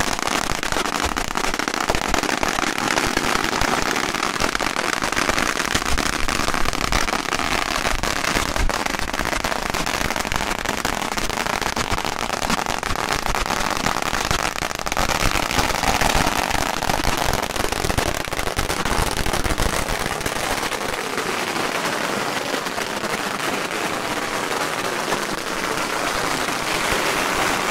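Firecrackers crackle rapidly nearby.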